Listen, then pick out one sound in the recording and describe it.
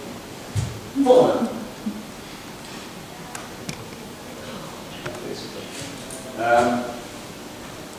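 A man speaks in short, lively bursts in an echoing hall.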